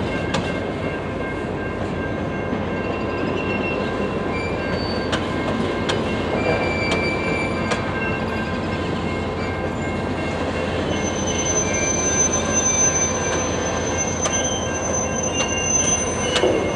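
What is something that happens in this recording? An electronic crossing bell rings.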